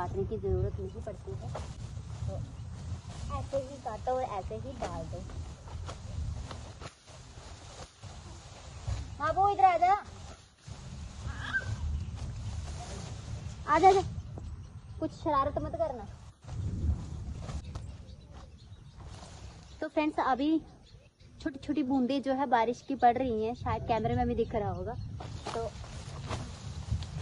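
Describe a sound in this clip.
A sickle cuts through grass stalks.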